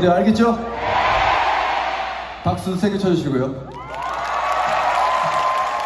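A crowd cheers and claps.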